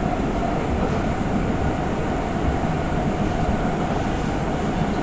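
A stopped train hums steadily with a low rumble.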